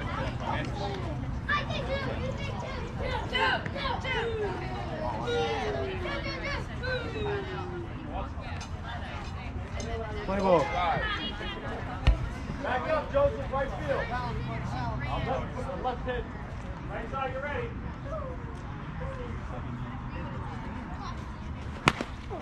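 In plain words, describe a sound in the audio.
Boys shout and call out across an open outdoor field.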